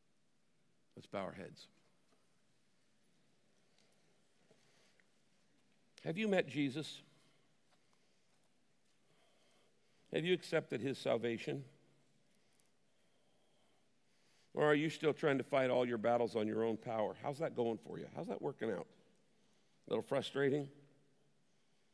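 A middle-aged man speaks slowly and calmly into a microphone, with long pauses.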